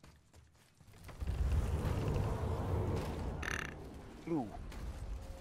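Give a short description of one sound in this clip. Heavy wooden doors rumble and creak open.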